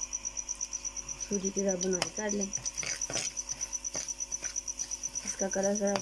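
A metal spoon scrapes and stirs in a pan.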